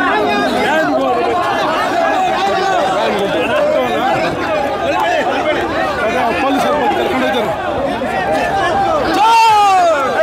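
An elderly man speaks loudly and with animation into a microphone.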